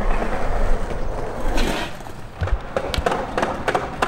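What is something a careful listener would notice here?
A skateboard rolls and clacks on concrete.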